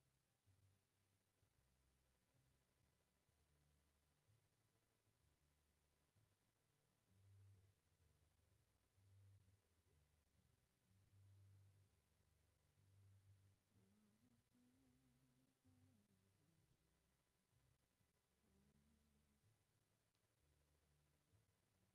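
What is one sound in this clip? A keyboard plays soft, low sustained chords in a large hall.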